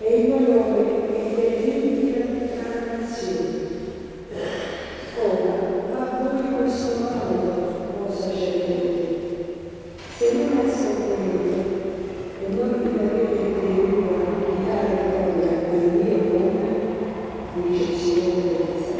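A man sings slowly into a microphone in a large echoing hall.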